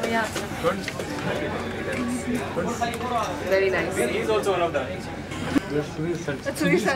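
Several adults chatter and talk nearby in a room.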